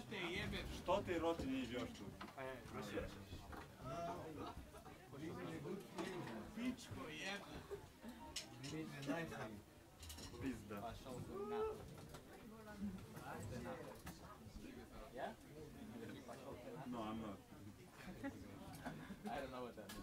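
Many men and women chat and talk over one another.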